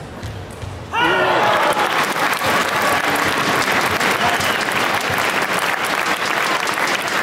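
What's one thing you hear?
A large crowd cheers and applauds loudly in a big echoing hall.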